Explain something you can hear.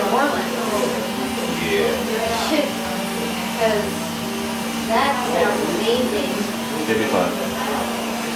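Electric hair clippers buzz steadily.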